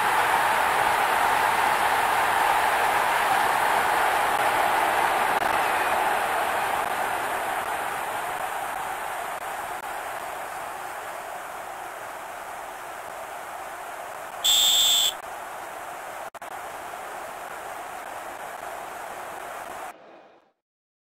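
A large crowd cheers loudly, then slowly fades.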